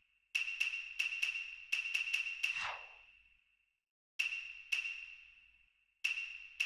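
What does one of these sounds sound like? Short bright menu chimes ring out in quick succession, each fading with a brief ring.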